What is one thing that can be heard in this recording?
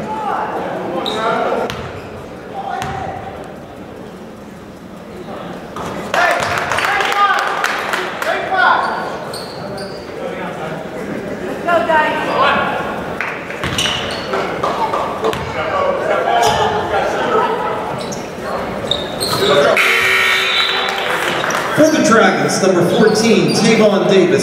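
A crowd in a large echoing gym chatters and cheers.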